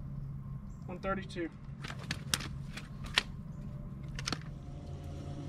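A fishing reel clicks and rattles close by.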